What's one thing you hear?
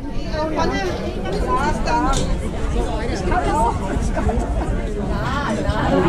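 Women talk with animation close by.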